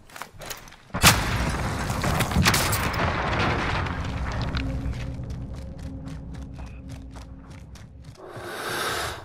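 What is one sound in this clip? A loud explosion booms close by and rumbles away slowly.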